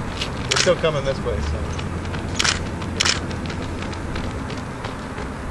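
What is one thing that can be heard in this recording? Runners' shoes slap on asphalt as they pass close by.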